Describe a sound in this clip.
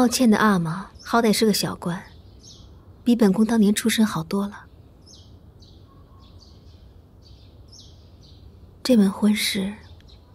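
A young woman speaks calmly and firmly, close by.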